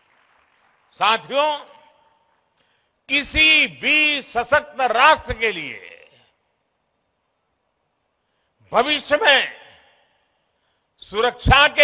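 An elderly man speaks slowly and forcefully into a microphone, heard through loudspeakers in a large hall, with pauses between phrases.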